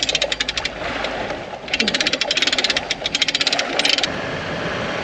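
Water splashes against a boat.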